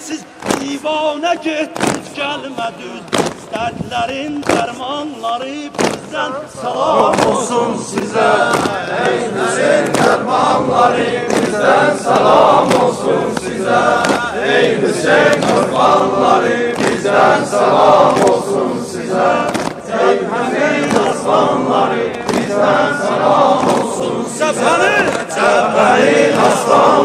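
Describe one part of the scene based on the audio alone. A crowd of men chants loudly outdoors.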